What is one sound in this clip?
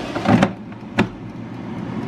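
A switch clicks.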